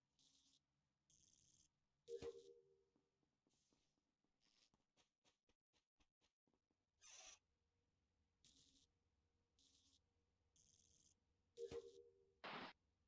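A bright electronic chime sounds as wires connect.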